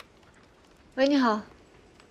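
A young woman answers a phone calmly.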